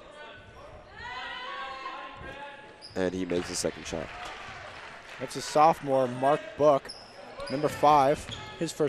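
A crowd cheers and shouts in the stands.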